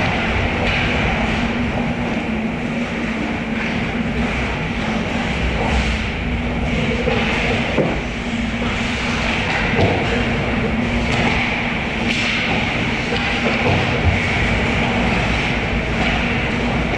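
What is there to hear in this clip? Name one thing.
Skate blades scrape and hiss across the ice in a large echoing hall.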